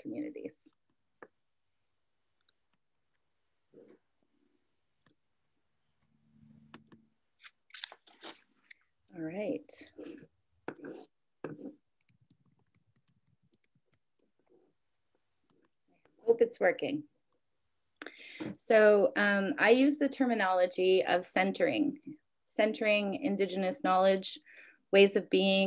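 A young woman talks calmly over an online call.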